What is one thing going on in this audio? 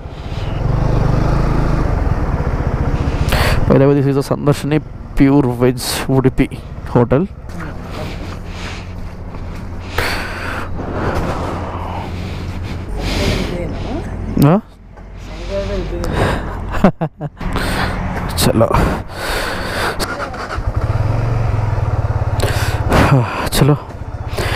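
A motorcycle engine idles with a low, steady rumble.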